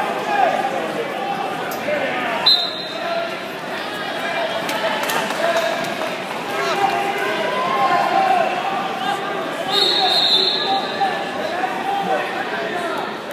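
Wrestlers thump and scuffle on a mat.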